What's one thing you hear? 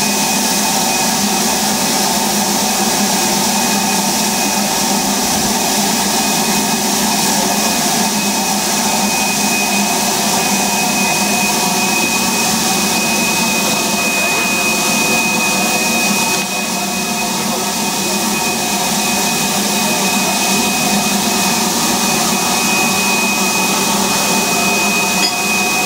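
Steam hisses loudly and steadily from a locomotive.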